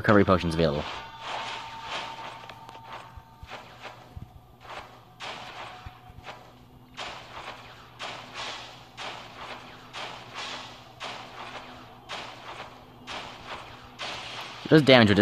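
Blades slash and hit in quick bursts.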